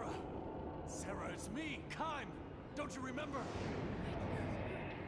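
A man pleads with emotion.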